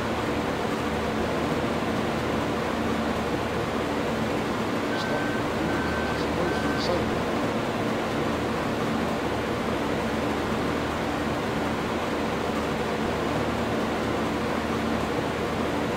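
Corn stalks rustle and crunch as a harvester cuts them.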